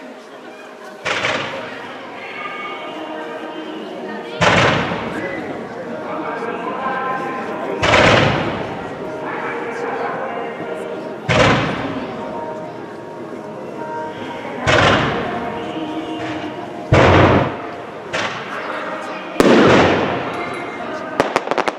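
Fireworks burst with loud bangs, one after another.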